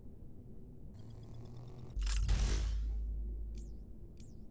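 A deep whoosh swells briefly and fades.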